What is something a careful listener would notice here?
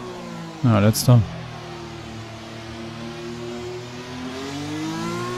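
A racing car engine hums at low speed, its pitch rising again near the end.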